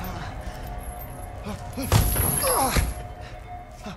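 A body falls hard to the floor.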